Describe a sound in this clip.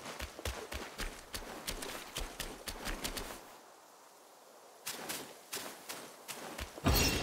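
Quick footsteps run across stone paving.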